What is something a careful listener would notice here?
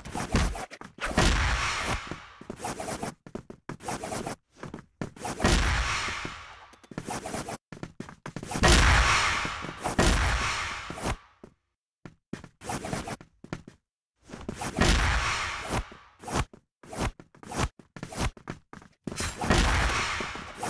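Loud splattering hits burst out and slowly fade.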